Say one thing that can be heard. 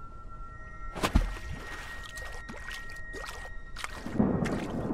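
A sudden burst crackles and sizzles.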